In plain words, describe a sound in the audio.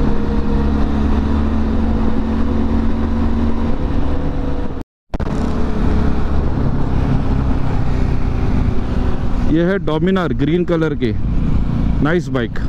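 A motorcycle engine drones steadily while riding.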